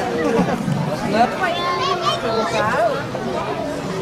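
Young children shout and squeal excitedly.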